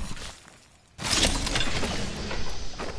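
A supply bin opens with a loud mechanical whoosh.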